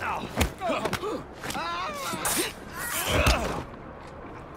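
Punches thud as a fighter strikes a man.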